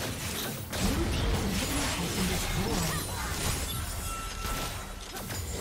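Magic spells crackle and blast in a fierce fight.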